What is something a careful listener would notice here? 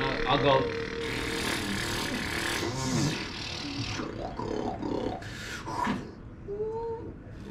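A man speaks across the room.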